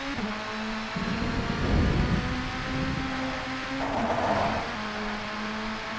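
Tyres skid on a wet track.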